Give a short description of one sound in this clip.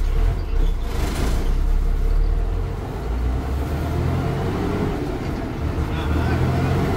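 A bus engine rumbles loudly and steadily from close by.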